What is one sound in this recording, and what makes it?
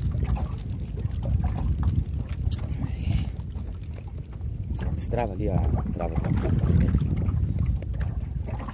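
Waves slosh against a small boat.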